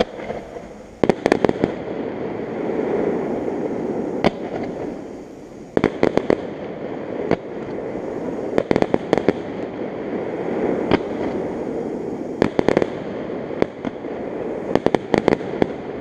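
Fireworks crackle after bursting.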